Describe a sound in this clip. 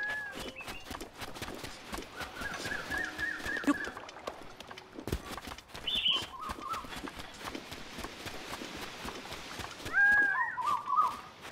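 Quick footsteps patter over soft ground.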